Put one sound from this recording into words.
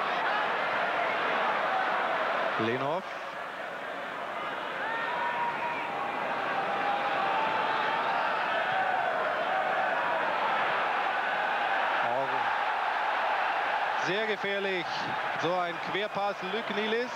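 A large crowd chants and roars steadily in an open stadium.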